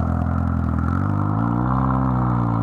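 A motorcycle engine revs up briefly.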